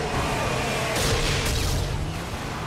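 A fiery explosion booms close by.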